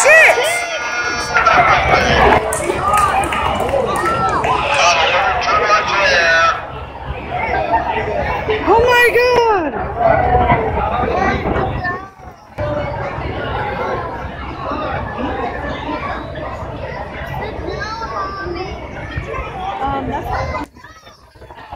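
A crowd of men and women shouts and talks excitedly outdoors.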